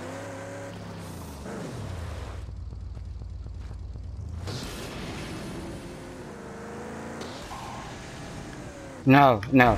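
A car engine roars under hard acceleration.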